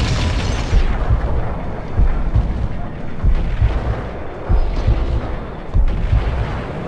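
Gunshots fire in loud, booming bursts.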